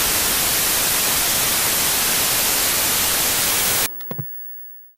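Loud, steady static hiss rushes and then cuts off abruptly.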